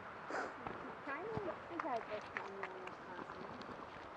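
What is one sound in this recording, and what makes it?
A dog whines with high, wavering cries.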